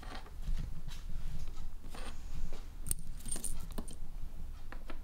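Small glass pieces clink and scrape on a hard surface.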